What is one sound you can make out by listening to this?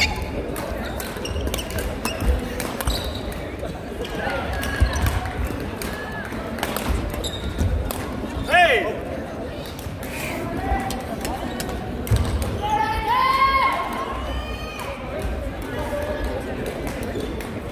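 Many voices chatter and call out, echoing in a large hall.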